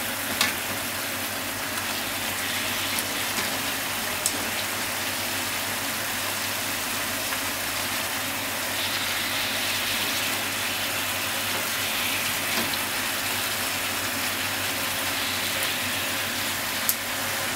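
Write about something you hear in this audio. Slices of food sizzle steadily in hot oil in a pan.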